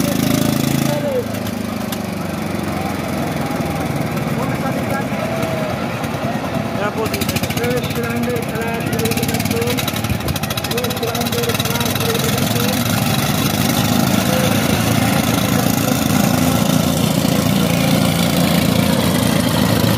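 Diesel power tiller engines run.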